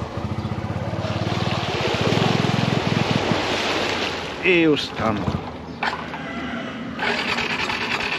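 Tyres splash through shallow water.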